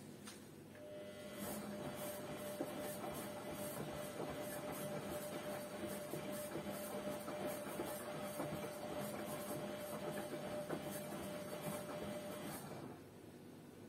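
Water sloshes inside a washing machine drum.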